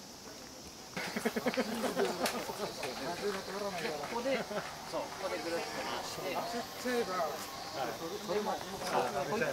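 Men talk and chatter nearby outdoors.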